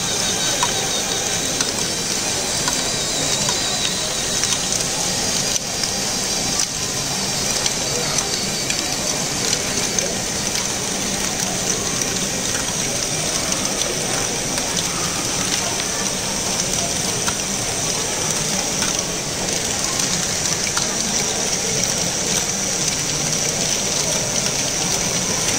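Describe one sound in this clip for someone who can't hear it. Plastic machine parts whir and clatter steadily.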